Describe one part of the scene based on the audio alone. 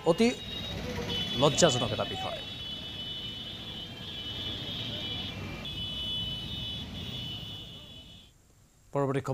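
Road traffic hums with cars passing.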